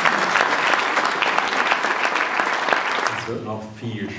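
An audience laughs and claps loudly.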